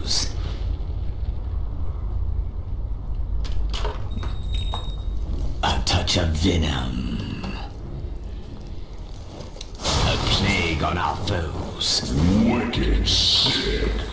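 Magic spells burst and crackle during a fight.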